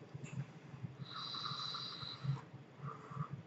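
Air whistles through a vape atomizer as a man draws on it.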